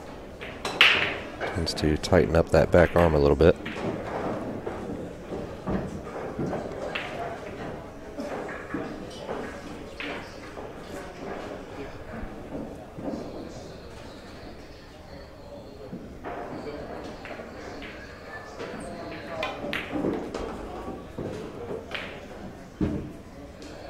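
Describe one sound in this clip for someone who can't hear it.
Billiard balls click sharply together.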